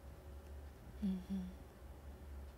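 A young woman makes a short, quiet sound with her voice, close by.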